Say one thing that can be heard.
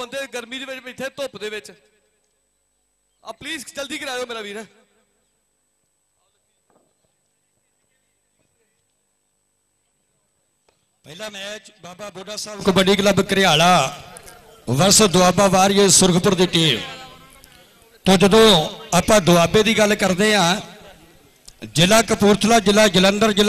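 A man speaks animatedly through a loudspeaker microphone, in bursts with pauses.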